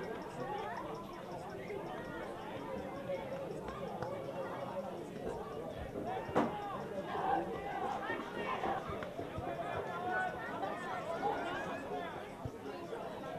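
Men shout and call out to each other outdoors across an open field.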